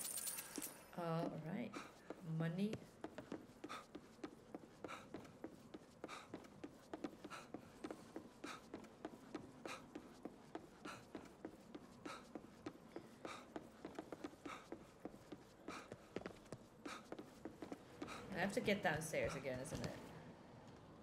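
A young woman speaks briefly into a close microphone.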